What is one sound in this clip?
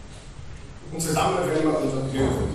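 A crowd of people sings together in a large echoing hall.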